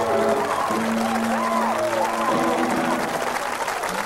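A rock band plays loudly with electric guitars and drums.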